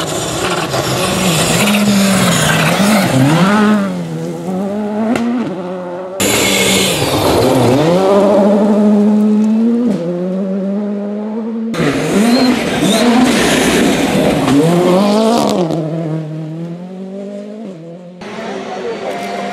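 A rally car engine roars and revs hard as cars speed past.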